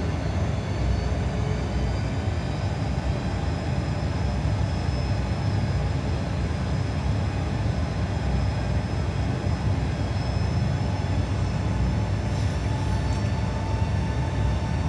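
Aircraft engines drone steadily with a low rumble.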